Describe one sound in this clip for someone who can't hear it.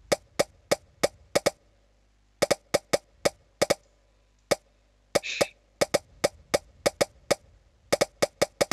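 Quick game pops sound as pieces stack up, one after another.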